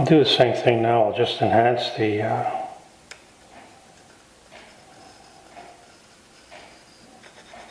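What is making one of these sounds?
A pencil scratches lightly across wood.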